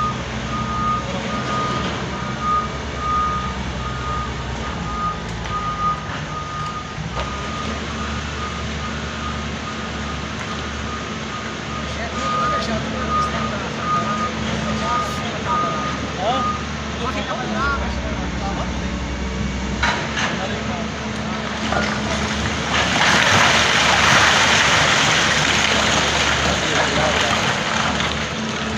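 A diesel excavator engine rumbles steadily.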